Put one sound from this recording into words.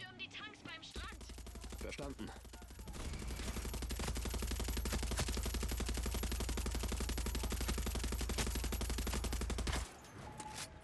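A heavy machine gun fires in rapid, continuous bursts.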